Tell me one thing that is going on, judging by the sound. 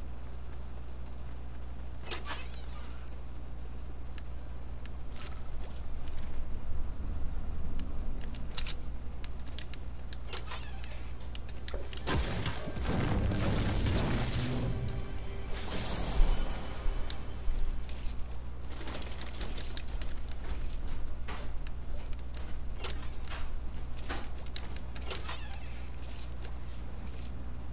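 Footsteps thud on wooden and carpeted floors.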